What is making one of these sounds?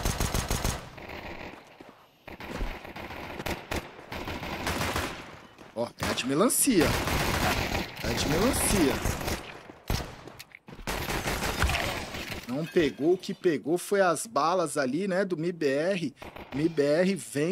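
A man comments with animation through a microphone.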